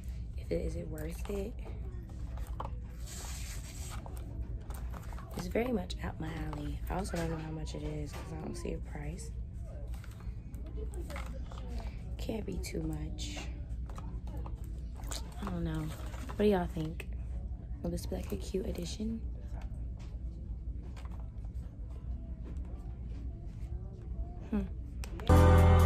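A cardboard box rustles in a young woman's hands.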